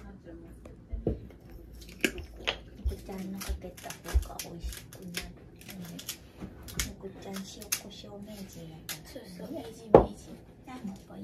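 A pepper grinder clicks and grinds.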